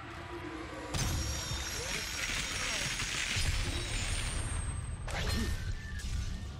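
A burst of magic whooshes and crackles.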